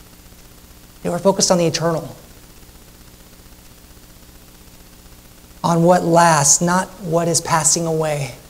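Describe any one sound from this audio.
A man speaks calmly through a microphone in a large room, pausing between phrases.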